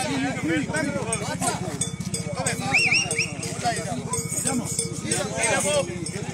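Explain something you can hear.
A group of men talk and call out loudly nearby.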